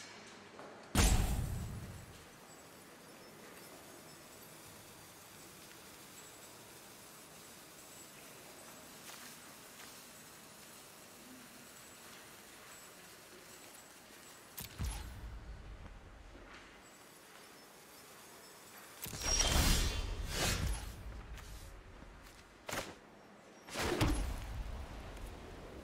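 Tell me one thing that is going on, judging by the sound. Deep whooshing thuds sound as game cards are played.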